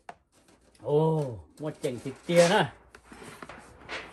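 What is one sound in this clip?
A plastic spoon scrapes through pieces of meat in a bowl.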